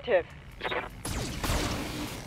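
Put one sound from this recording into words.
A laser weapon fires with a loud, roaring blast.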